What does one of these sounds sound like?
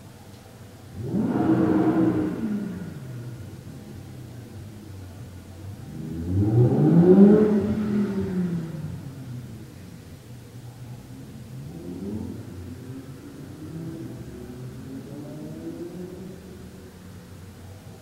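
A man hums long, low, wavering tones close by.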